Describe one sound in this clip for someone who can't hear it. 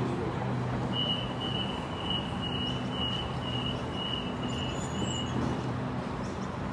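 A train's door warning beeps rapidly.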